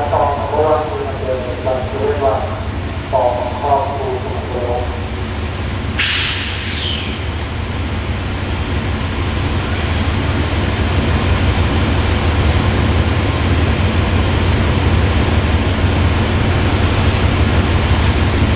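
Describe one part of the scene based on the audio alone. A diesel train engine rumbles steadily and grows louder as the train approaches.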